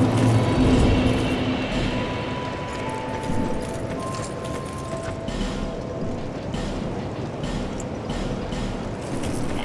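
Short soft chimes beep one after another.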